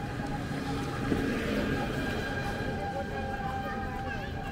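Young women chat nearby.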